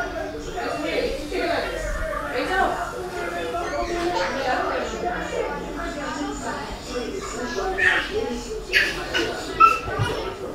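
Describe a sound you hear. A girl speaks calmly close by.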